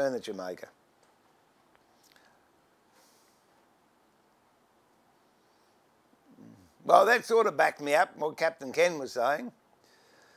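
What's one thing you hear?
An elderly man speaks calmly and clearly to the listener, close by.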